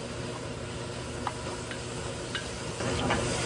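A wooden spoon scrapes and clicks against a pot.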